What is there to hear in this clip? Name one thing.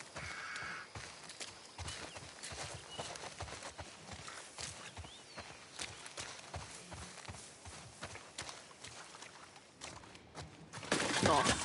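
Footsteps crunch through grass and on dirt at a quick pace.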